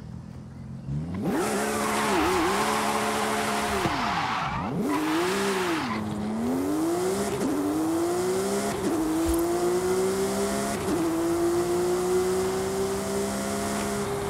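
A sports car engine roars and revs, climbing in pitch through gear changes.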